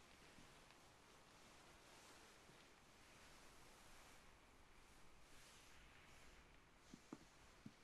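Soft fabric rubs and brushes close up.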